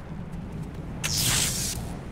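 An electric trap crackles and zaps with a sharp burst.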